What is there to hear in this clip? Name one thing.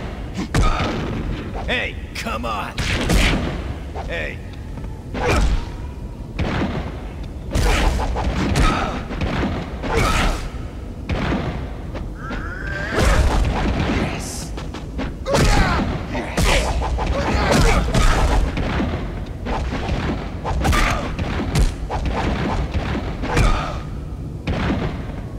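Punches and kicks land with heavy thuds, again and again.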